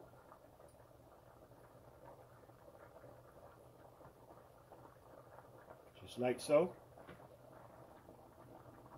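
A creamy sauce bubbles softly as it simmers.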